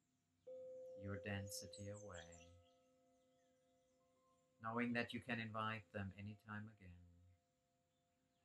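A middle-aged man speaks calmly and softly, close to the microphone.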